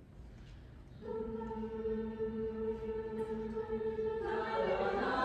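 A women's choir sings sustained notes without accompaniment.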